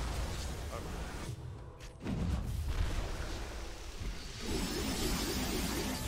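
Video game spell and combat effects crackle and boom.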